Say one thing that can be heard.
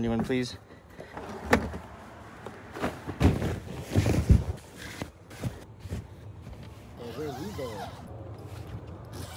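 Bedding rustles and thumps as a man climbs across a mattress.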